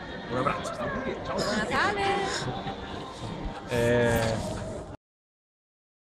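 A man laughs and talks cheerfully close by.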